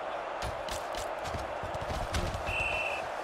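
Football players thud into each other in a tackle.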